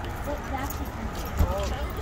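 Footsteps scuff on pavement nearby.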